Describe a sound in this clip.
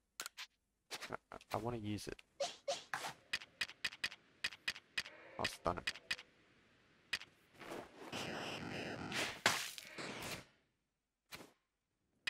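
Menu selections click.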